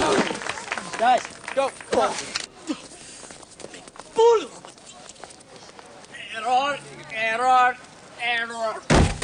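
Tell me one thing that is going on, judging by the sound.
A man shouts with animation, as if in pain.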